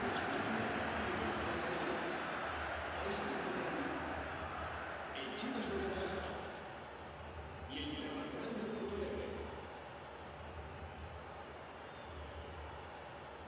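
A stadium crowd murmurs steadily in a large open space.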